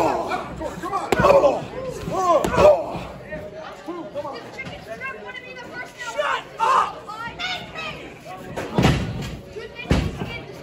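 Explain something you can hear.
A crowd of people nearby shouts and cheers in an echoing hall.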